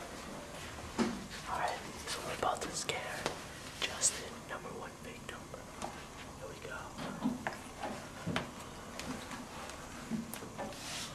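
A young man talks animatedly and laughs close by.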